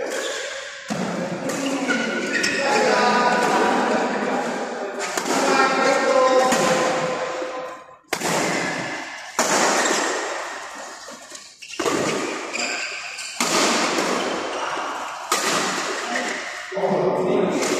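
Badminton rackets smack a shuttlecock back and forth in a large echoing hall.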